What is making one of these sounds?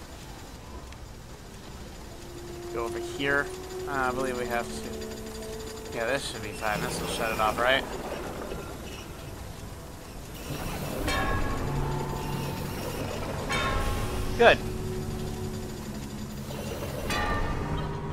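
Steam hisses from a pipe.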